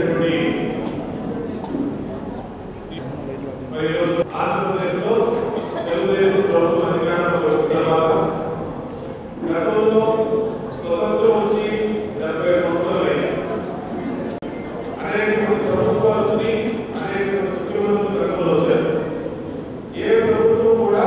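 A man speaks with animation into a microphone, heard through loudspeakers in an echoing room.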